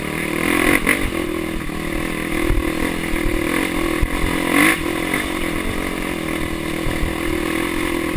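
A dirt bike engine roars steadily up close.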